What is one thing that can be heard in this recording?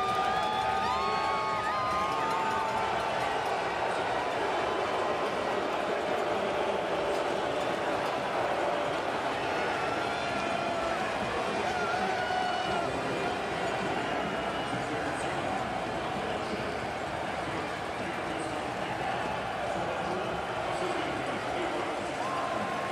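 Fans whistle and chant from the stands.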